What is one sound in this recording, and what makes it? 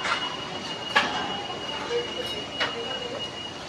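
Metal pieces clank on a hard floor nearby.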